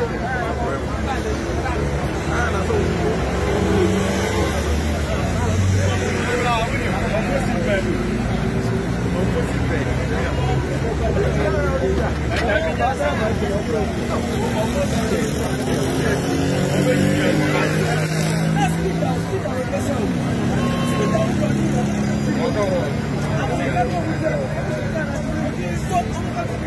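A crowd of men and women talks and shouts nearby outdoors.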